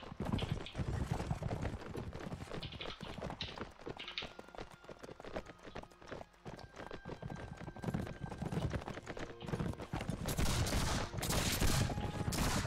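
Horse hooves thud on grass.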